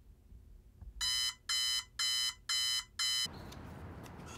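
An alarm clock beeps in quick repeated bursts.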